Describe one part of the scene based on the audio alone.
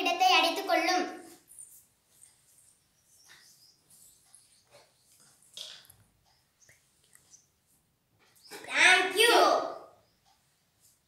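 A child speaks loudly and clearly close by.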